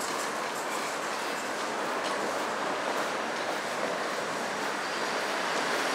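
A bicycle rolls quietly along the street.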